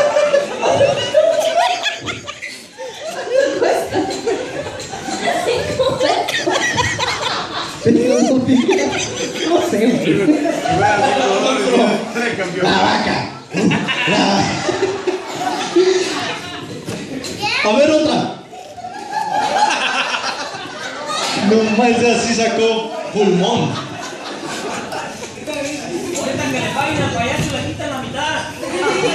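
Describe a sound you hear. A crowd of adults and children chatters and laughs in a large echoing room.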